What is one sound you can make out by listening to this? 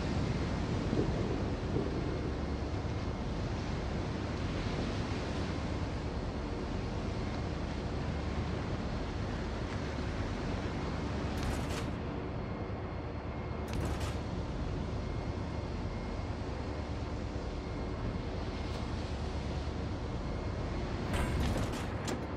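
A warship's engine rumbles steadily as it cuts through the sea.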